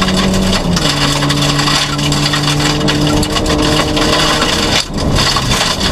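Tyres rumble and crunch over a gravel road.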